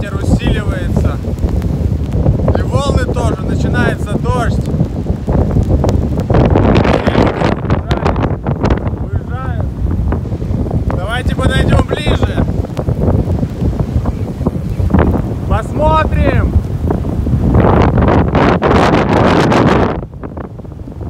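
Strong wind buffets the microphone with a deep roar.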